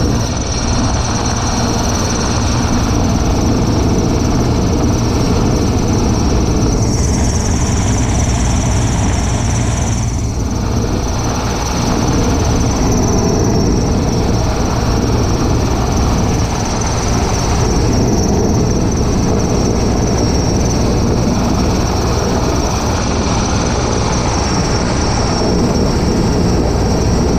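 A helicopter's rotor thumps loudly and steadily overhead.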